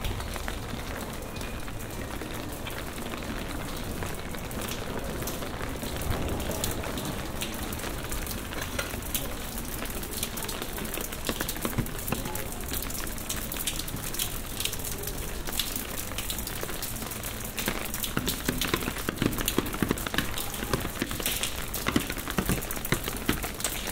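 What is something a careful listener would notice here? Footsteps tap on wet stone paving in a narrow echoing alley.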